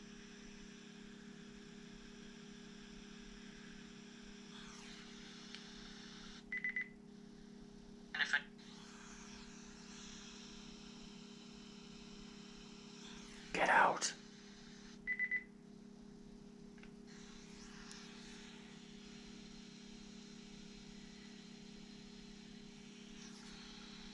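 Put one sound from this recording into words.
A man talks quietly on a phone, close by.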